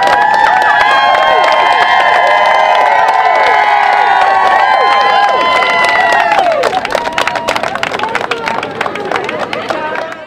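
A crowd claps and applauds.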